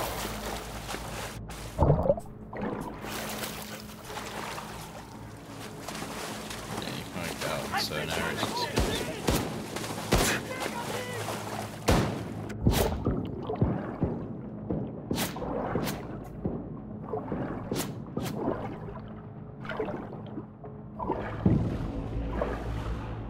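Water splashes and sloshes as someone swims.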